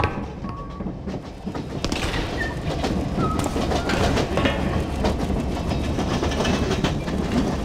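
Footsteps clank on a metal walkway.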